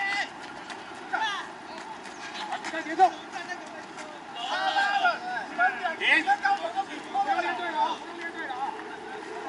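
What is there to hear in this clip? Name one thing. Young men shout and call out to each other outdoors across an open field.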